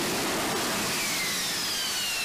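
A jet engine whines, its pitch slowly falling.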